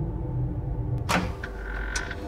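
A wooden cabinet door clicks open.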